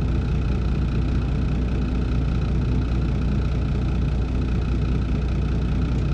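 A bus engine idles with a steady low rumble nearby.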